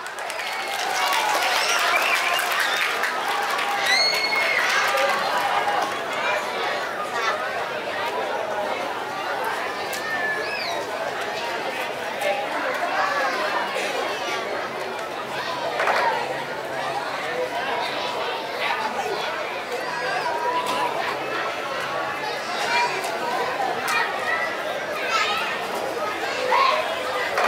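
A large outdoor crowd chatters and calls out on all sides.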